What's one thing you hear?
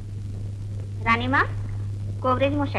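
A woman speaks in a high voice.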